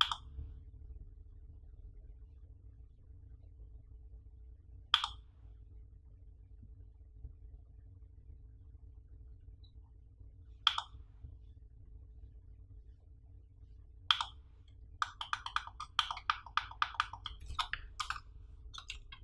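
A computer mouse button clicks sharply, sometimes in quick bursts.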